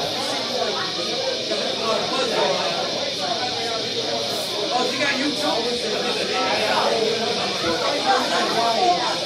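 A man sings loudly into a microphone through loudspeakers.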